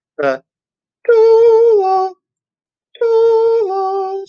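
A man sings long, steady notes through a microphone.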